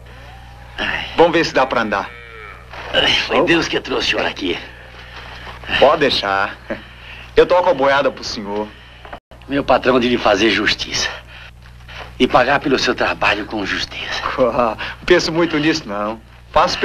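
An older man answers in a strained, pained voice.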